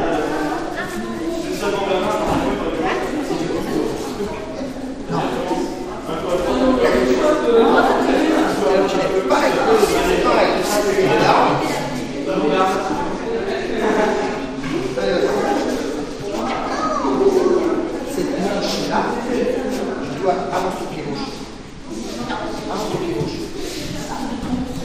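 Children chatter and call out throughout a large echoing hall.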